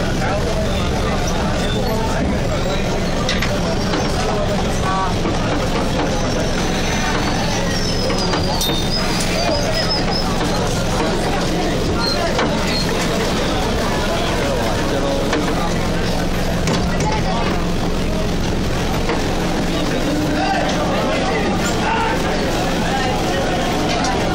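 A crowd of men talks and murmurs close by, outdoors.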